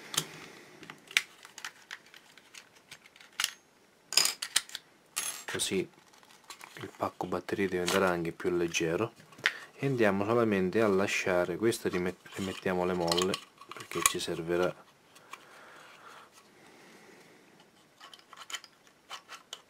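Plastic parts click and rattle as they are handled up close.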